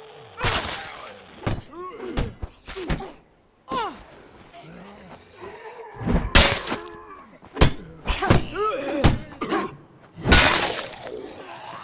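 Heavy blows thud repeatedly.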